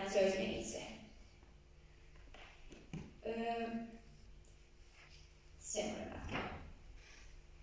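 A young woman speaks calmly into a microphone, heard through loudspeakers in an echoing hall.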